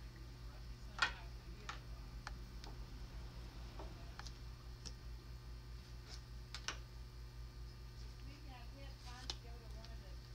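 Small plastic makeup items click and tap close by.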